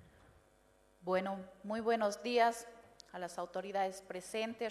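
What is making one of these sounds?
A woman speaks into a microphone, heard over loudspeakers in a large echoing hall.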